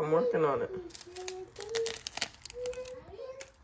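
A seasoning packet crinkles.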